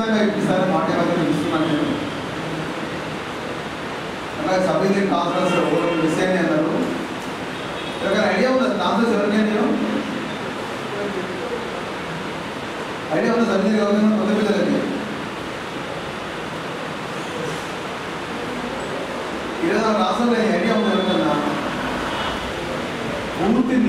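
A middle-aged man speaks into a microphone in short bursts with pauses.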